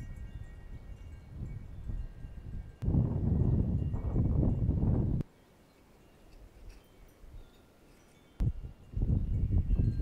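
Wind gusts buffet the microphone outdoors.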